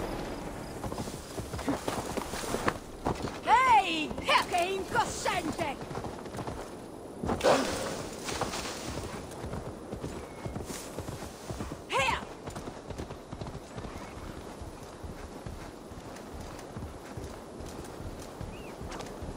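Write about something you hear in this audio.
Heavy paws thud and scrape on dirt at a run.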